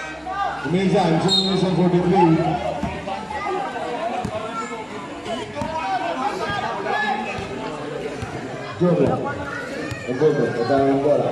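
A crowd of spectators chatters and shouts nearby outdoors.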